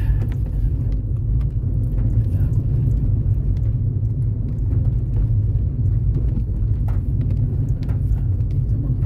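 A car drives along a road, its low rumble heard from inside the car.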